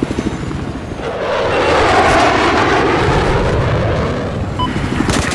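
A jet roars past overhead.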